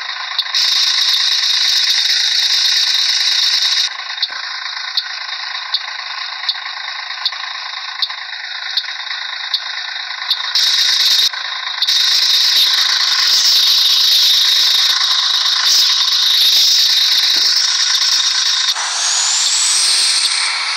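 A bus engine idles steadily.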